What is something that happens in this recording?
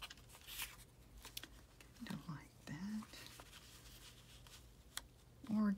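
Paper rustles and crinkles softly as hands handle it.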